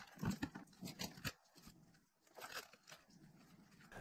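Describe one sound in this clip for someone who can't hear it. A rubber glove rustles and snaps as it is pulled off a hand.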